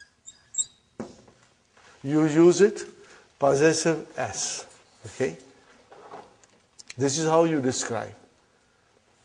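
A middle-aged man speaks calmly and clearly through a clip-on microphone.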